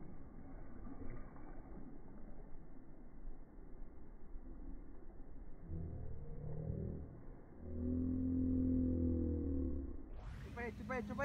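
Water gurgles and rumbles, heard muffled from underwater.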